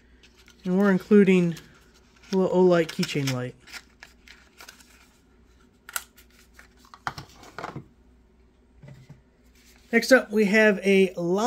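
Hands rustle and handle cardboard and plastic packaging.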